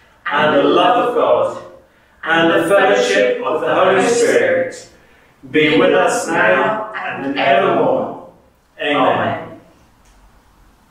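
A woman sings along in short phrases.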